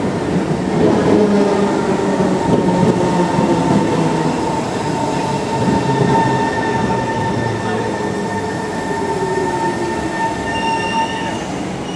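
Train brakes squeal with a steady high whine as the train slows.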